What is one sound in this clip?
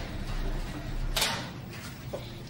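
A coin clinks onto a metal surface.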